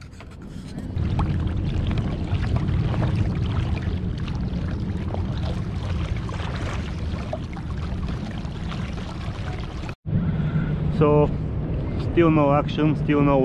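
Wind buffets the microphone outdoors on open water.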